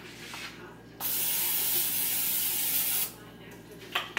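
Cooking oil sprays from a can in a steady hiss.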